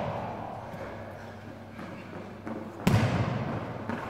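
A person runs across a hard floor, with footsteps echoing through a large hall.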